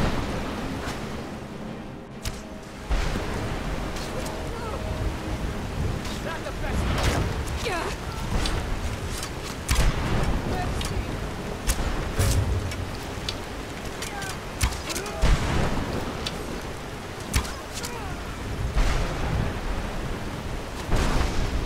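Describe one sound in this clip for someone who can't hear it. Heavy rain falls outdoors.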